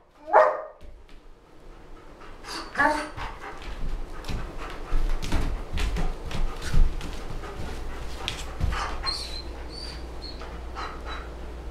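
A dog's paws tap and scrape on a book on the floor.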